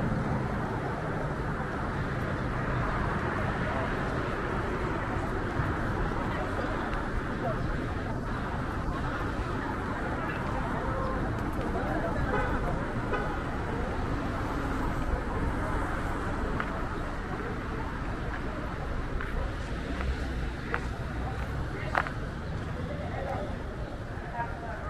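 Footsteps tap on paving.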